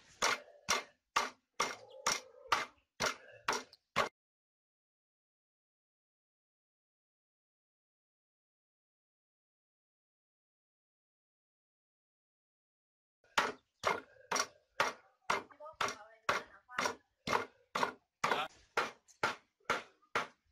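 A cleaver chops meat on a wooden board in quick, steady knocks.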